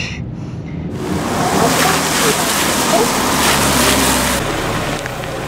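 A car engine roars as a car drives on a wet track.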